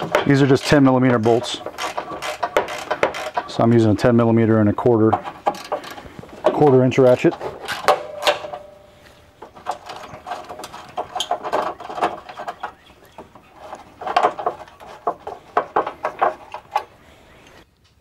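A ratchet wrench clicks as it turns a bolt.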